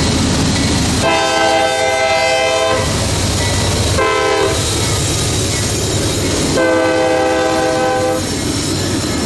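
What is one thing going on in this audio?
A train horn blasts in long and short bursts.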